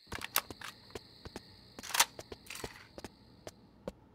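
A gun magazine is pulled out and clicked back in.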